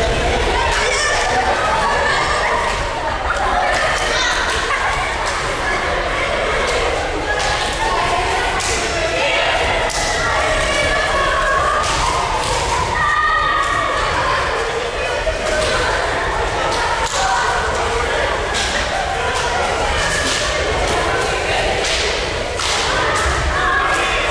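Feet thud and pad on mats as people run about.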